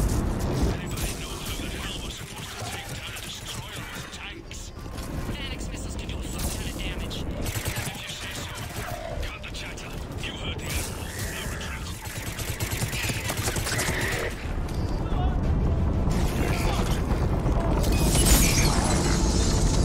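Energy blasts crackle and burst.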